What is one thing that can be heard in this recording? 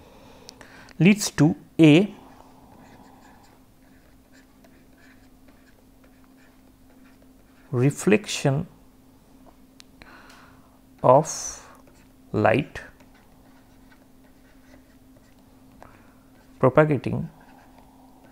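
A man speaks calmly in short phrases with long pauses, close to a microphone.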